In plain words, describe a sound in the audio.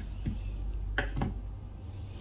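A knife cuts through a lemon and taps a wooden board.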